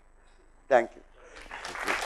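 A middle-aged man speaks briefly through a microphone.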